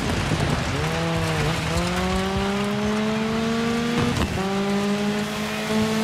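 Tyres crunch and hiss over loose gravel.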